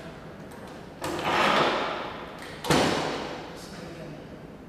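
A metal vise clanks and rattles as it is tightened.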